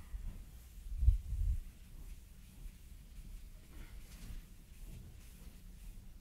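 A board eraser rubs across a blackboard.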